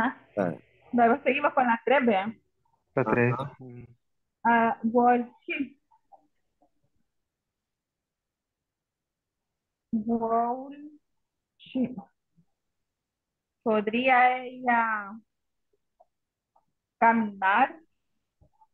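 A woman speaks calmly, heard through an online call, in short phrases with pauses.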